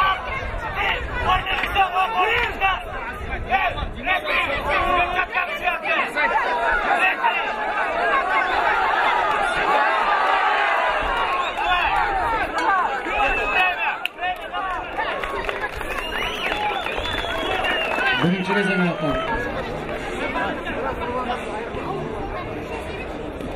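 A large outdoor crowd cheers and shouts.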